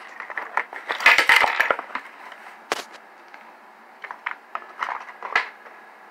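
Small plastic parts clack onto a wooden table.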